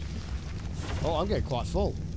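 A man speaks into a close microphone in a casual tone.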